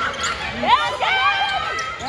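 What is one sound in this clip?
Young women on a bench shout and cheer.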